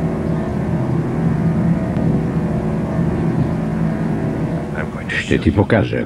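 A machine rumbles with a low, steady hum.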